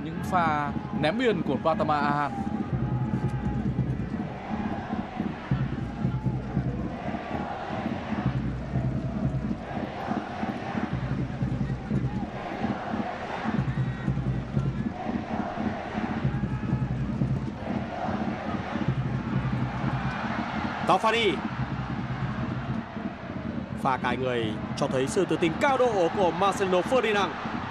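A large stadium crowd cheers and chants loudly.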